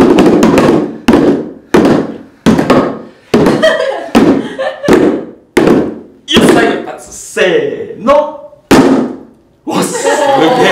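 Hand drums are struck together in single sharp beats with pauses between.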